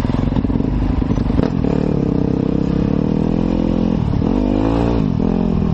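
Tyres splash through mud and puddles.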